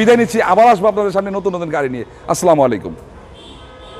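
A man speaks with animation close to a clip-on microphone.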